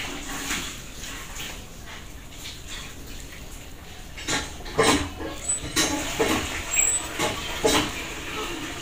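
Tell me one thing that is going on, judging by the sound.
A hand scoops and squishes wet rice in a metal pot.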